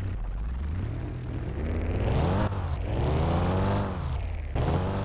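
An engine revs up and down in pitch.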